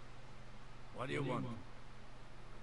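A man answers curtly in a gruff voice.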